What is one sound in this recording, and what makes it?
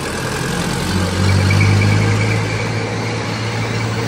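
A motor scooter buzzes past close by.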